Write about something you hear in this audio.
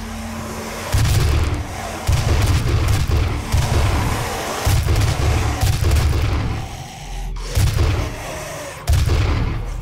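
A rifle fires in loud, heavy bursts.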